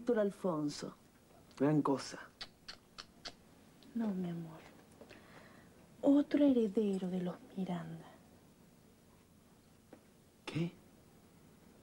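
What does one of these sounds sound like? A young woman speaks softly and playfully close by.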